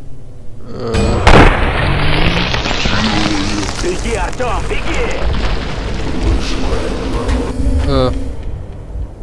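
Heavy debris crashes and rumbles as a structure breaks apart.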